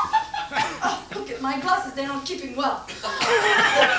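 A middle-aged woman speaks quietly nearby.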